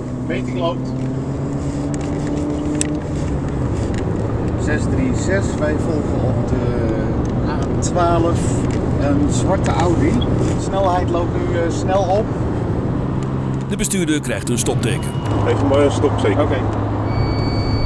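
Men talk calmly inside a car, close by.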